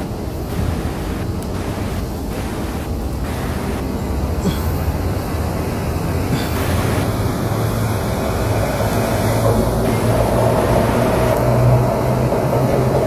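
Distant people murmur faintly in a large echoing hall.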